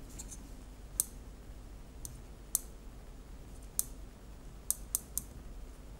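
Buttons click faintly as a finger presses a small handheld device.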